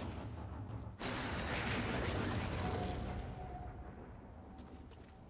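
Thunder crashes loudly and rumbles away.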